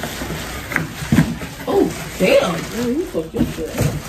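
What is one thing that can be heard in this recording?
Plastic packaging crinkles.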